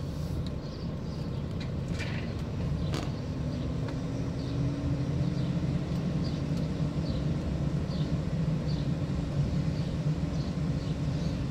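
Tyres roll over paving stones.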